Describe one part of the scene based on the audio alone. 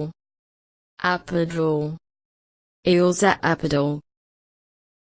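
A woman reads out a single word clearly through a microphone, again and again.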